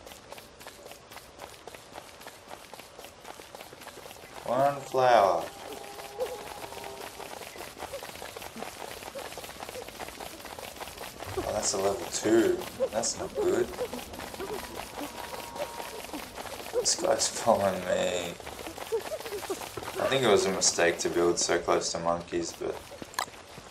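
Footsteps patter steadily on grass.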